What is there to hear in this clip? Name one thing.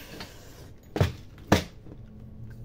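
A plastic box knocks against a table as it is set down and handled.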